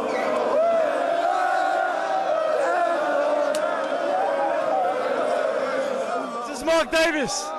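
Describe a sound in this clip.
A large crowd of fans chants and cheers loudly.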